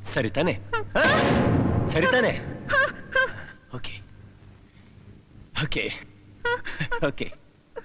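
A young woman speaks in a startled voice close by.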